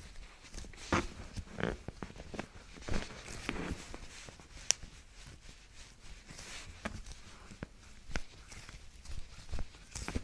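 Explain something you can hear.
Sharp clicks and knocks sound close by.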